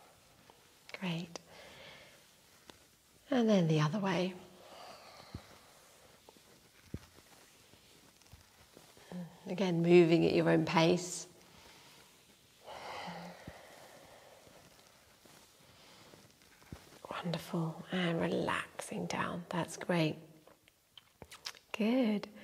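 A young woman speaks calmly and gently nearby, with pauses.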